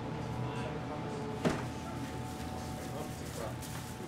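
A glass-door drinks fridge door swings shut.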